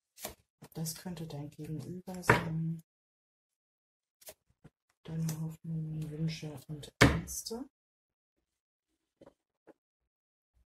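Playing cards are laid softly onto a table.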